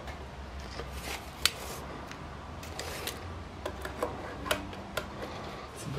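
A tape measure rattles and clicks as it is pulled out and retracted.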